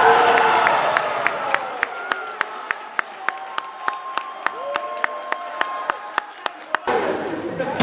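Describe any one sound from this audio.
A volleyball is bounced on a hard floor before a serve.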